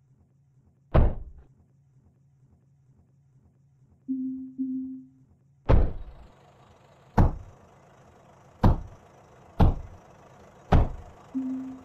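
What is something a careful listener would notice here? Blocks are placed with deep, heavy thuds.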